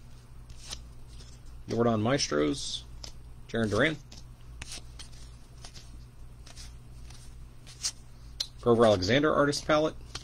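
Trading cards slide and flick softly against one another.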